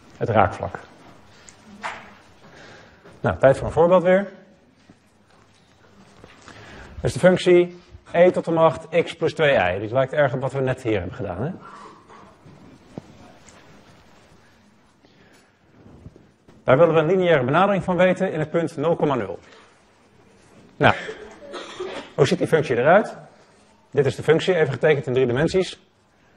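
A man lectures calmly through a microphone, with pauses between phrases.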